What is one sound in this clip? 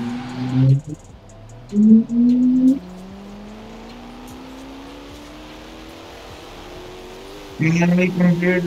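A sports car engine roars and rises in pitch as the car speeds up.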